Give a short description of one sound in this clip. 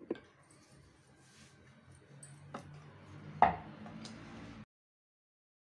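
A rolling pin rolls and thumps softly on a wooden board.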